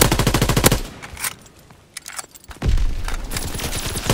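Metal clicks and clacks as a gun is reloaded.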